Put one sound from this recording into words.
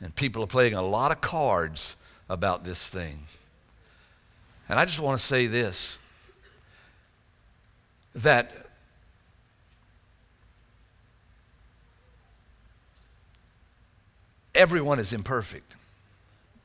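A middle-aged man speaks slowly, with long pauses, into a microphone.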